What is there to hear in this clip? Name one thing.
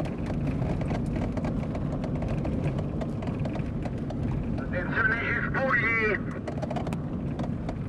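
A vehicle engine rumbles as it drives past.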